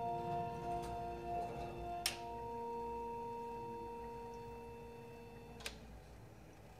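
An electronic instrument holds steady, organ-like tones that change once and then cut off.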